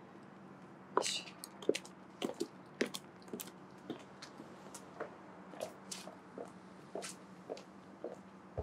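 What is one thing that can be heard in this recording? Footsteps walk away on pavement.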